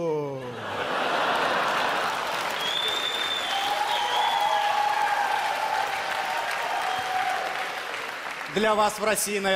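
A large audience laughs and applauds loudly.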